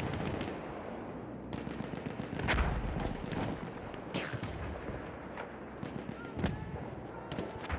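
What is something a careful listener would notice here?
Gunshots crack in the distance and echo off stone walls.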